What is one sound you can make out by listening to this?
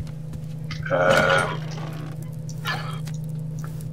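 A wooden chest lid opens with a thud.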